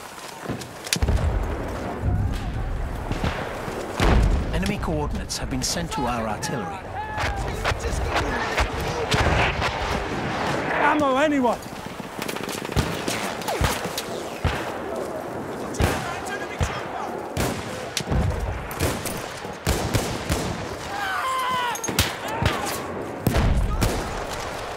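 Explosions boom heavily in the distance.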